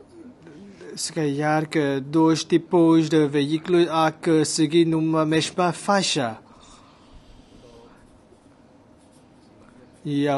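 A man speaks calmly into a microphone, reading out.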